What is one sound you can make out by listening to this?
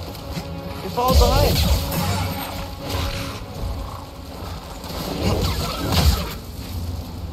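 A glowing energy blade hums and clashes with sparks.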